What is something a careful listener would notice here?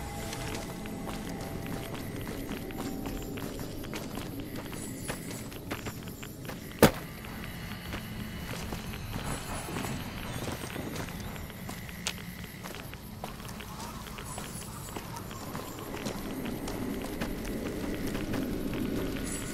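Footsteps crunch steadily on dirt.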